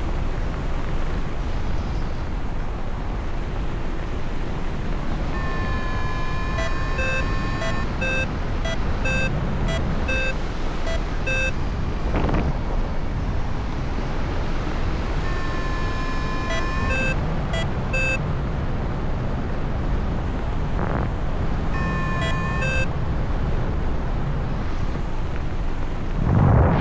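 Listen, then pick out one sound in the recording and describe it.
Wind rushes steadily past at height, outdoors.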